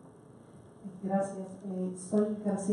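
A woman speaks up loudly and with animation.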